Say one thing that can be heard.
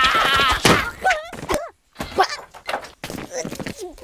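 A wooden door crashes to the floor.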